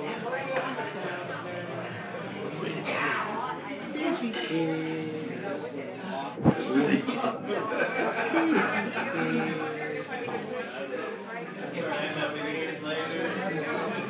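A crowd of people chatters in the background of a busy room.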